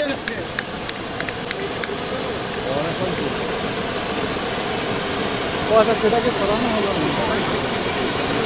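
A firework fountain sprays sparks with a steady, loud hiss.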